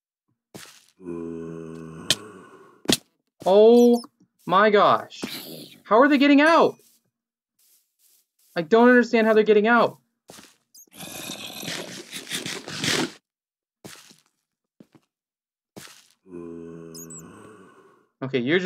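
A zombie groans low and hoarsely.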